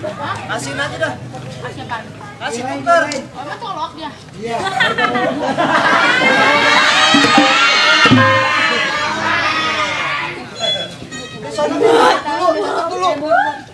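A woman speaks in reply.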